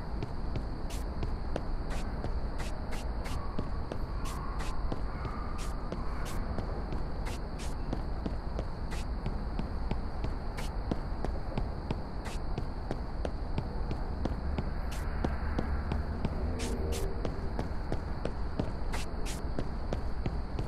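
Footsteps tap steadily on hard pavement.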